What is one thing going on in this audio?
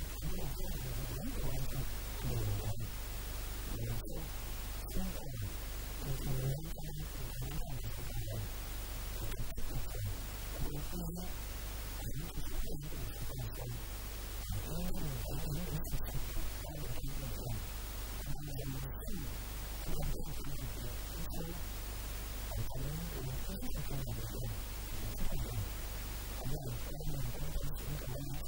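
A middle-aged man speaks calmly into a microphone close by.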